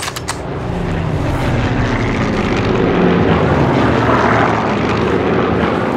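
Bodies scuffle and struggle on sand.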